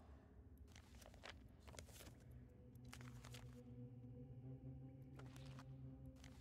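A man talks calmly into a microphone.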